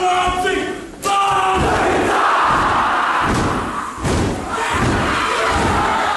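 A large crowd of young men shouts and chants in unison in an echoing hall.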